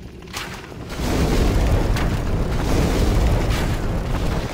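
Fire bursts with a loud, steady roar.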